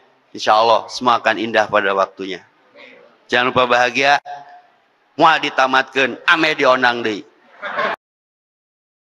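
A man speaks with animation into a microphone, heard through a loudspeaker.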